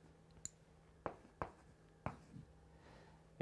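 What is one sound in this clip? A marker taps and squeaks on a board.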